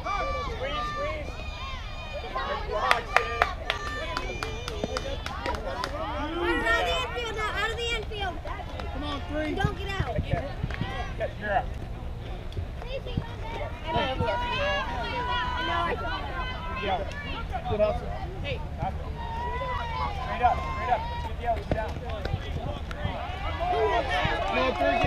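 Young girls and spectators shout and cheer outdoors.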